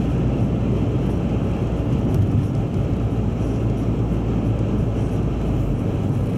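Tyres hiss and rumble over a slushy road.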